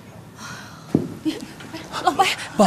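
A middle-aged woman speaks urgently, close by.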